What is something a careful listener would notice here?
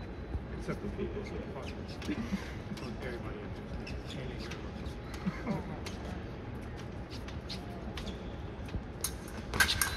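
Fencing blades click and clash together.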